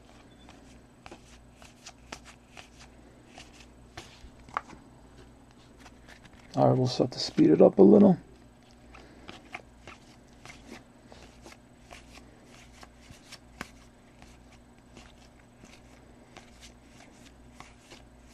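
Trading cards rustle and slide as hands flip through them.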